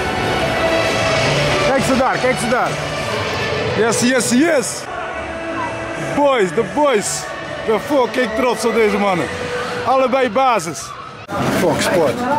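A crowd of fans chants and sings loudly in a stadium.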